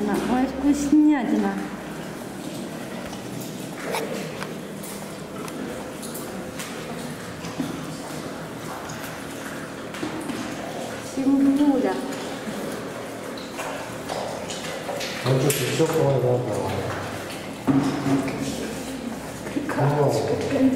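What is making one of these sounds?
A lion cub chews and tears at raw meat.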